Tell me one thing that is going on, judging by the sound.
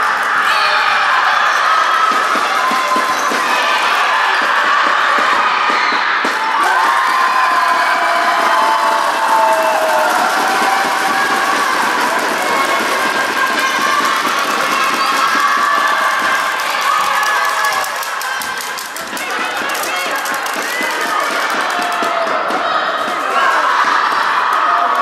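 Young girls call out to each other across an echoing gym.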